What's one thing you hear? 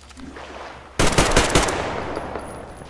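A rifle fires a quick burst of loud shots that echo away.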